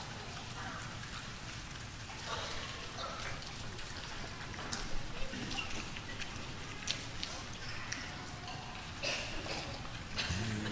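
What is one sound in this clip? A crowd of people murmurs quietly in a large echoing hall.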